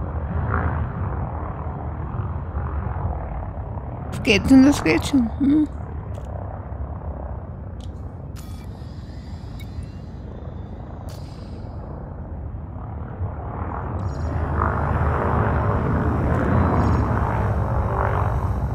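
A spacecraft engine hums with a low, steady rumble that swells louder near the end.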